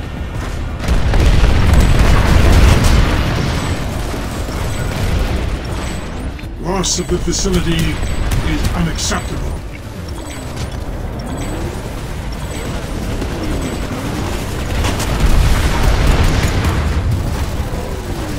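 Shells explode with loud booms.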